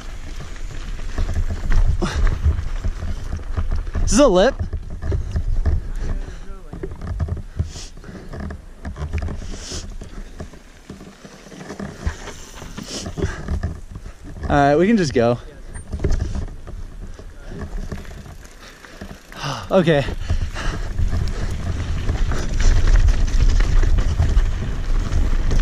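Bicycle tyres crunch and roll over a dirt trail.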